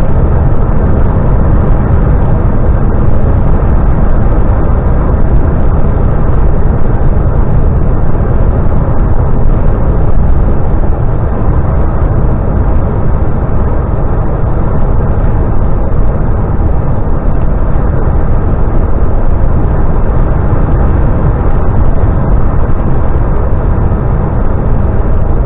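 A vehicle's engine drones steadily, heard from inside the cab.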